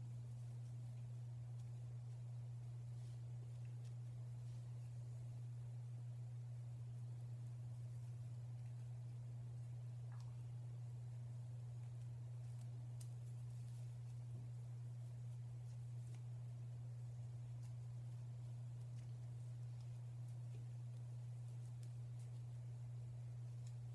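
Fingers rustle softly through twisted hair close by.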